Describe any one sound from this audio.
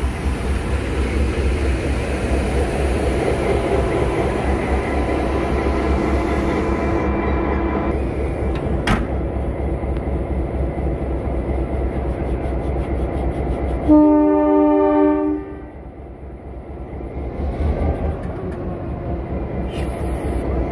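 A diesel locomotive engine rumbles and throbs close by.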